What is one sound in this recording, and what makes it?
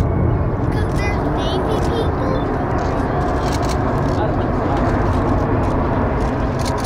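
A large jet plane roars loudly overhead with a deep, steady rumble.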